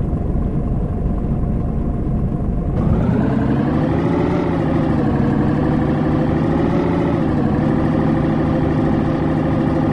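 A truck engine idles with a low rumble, then revs up and drones steadily.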